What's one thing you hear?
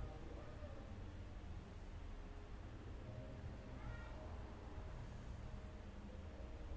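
A man chants slowly in a sustained, melodic voice into a microphone.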